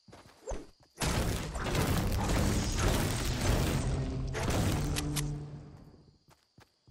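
A pickaxe chops into a tree trunk in quick blows.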